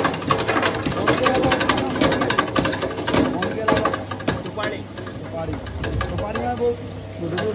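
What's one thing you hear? A grinding machine hums steadily.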